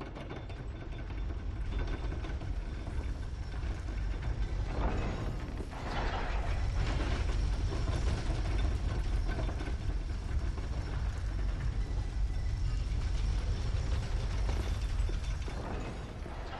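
A heavy lift rumbles deeply as it descends.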